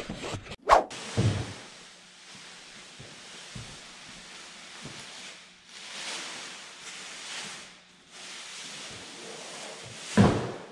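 A plastic sheet rustles and crinkles as it is spread out.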